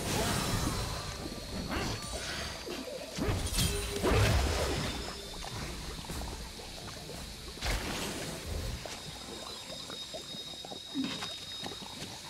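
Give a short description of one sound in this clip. Video game spell effects whoosh, crackle and thud in quick bursts.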